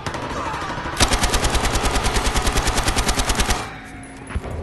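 A machine gun fires a rapid, steady burst.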